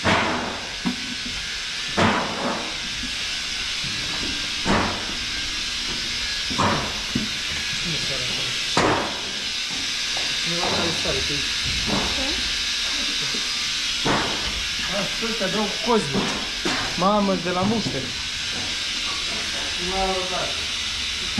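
Milking machines hiss steadily.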